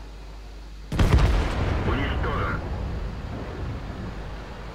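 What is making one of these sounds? A tank cannon fires with a loud boom that echoes away.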